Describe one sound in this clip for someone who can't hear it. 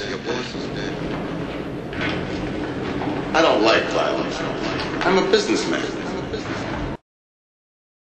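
A man raps rhythmically over a beat.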